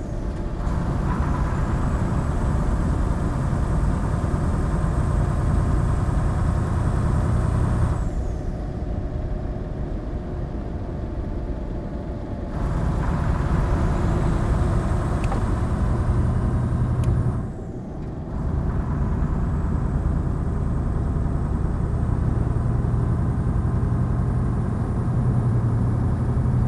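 Tyres hum on a smooth road.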